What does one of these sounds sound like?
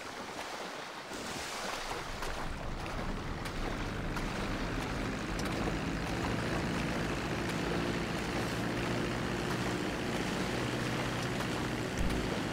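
A propeller plane's engine drones steadily nearby.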